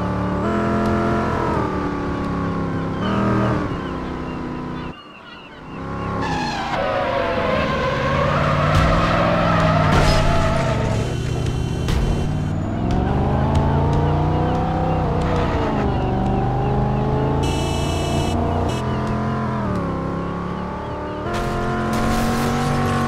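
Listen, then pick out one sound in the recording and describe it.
An engine revs loudly, rising and falling in pitch.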